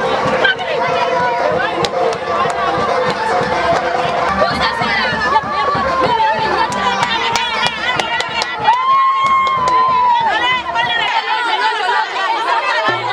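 A crowd of women sings together loudly nearby.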